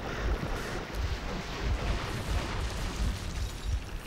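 An explosion booms and crackles with fire.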